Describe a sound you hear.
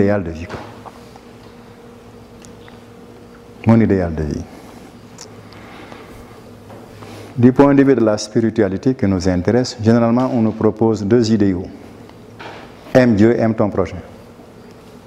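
An elderly man speaks calmly in short bursts through a clip-on microphone.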